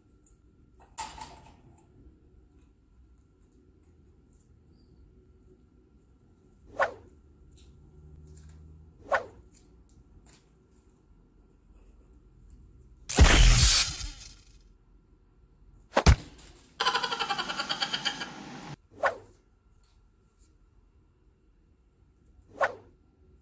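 A parrot gives short sharp chirps and whistles now and then.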